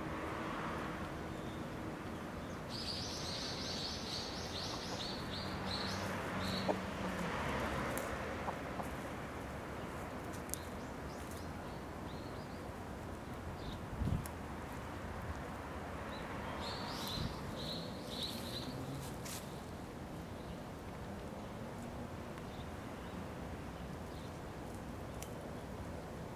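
Chickens peck and scratch at the ground nearby.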